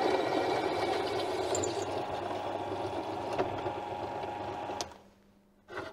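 A drill press whirs steadily and then stops.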